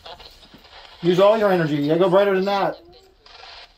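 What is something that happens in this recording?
A man speaks nearby in a slow, drawn-out voice.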